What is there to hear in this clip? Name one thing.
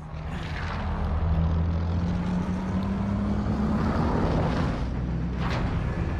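Jet engines roar loudly as a large aircraft flies past.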